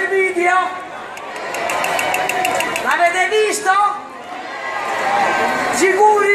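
A crowd chatters and cheers.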